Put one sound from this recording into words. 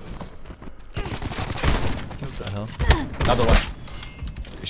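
Rapid gunshots ring out up close.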